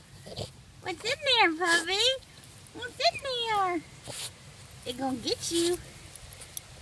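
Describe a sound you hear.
A puppy whines in high, wavering yelps close by.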